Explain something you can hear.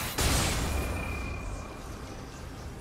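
A loud magic blast bursts and rings out, then fades.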